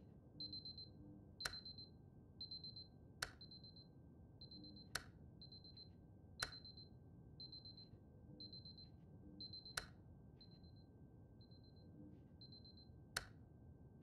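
Alarm clocks beep rapidly and repeatedly.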